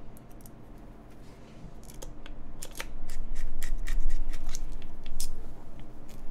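Plastic keycaps click and clack as they are pulled and pressed.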